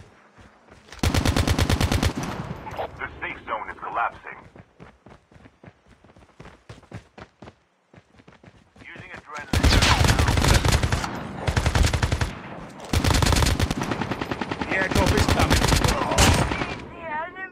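A rifle fires in rapid bursts of shots, loud and close.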